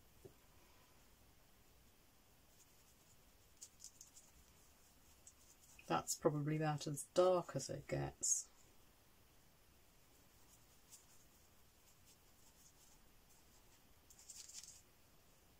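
A paintbrush softly dabs and scrapes paint on a palette.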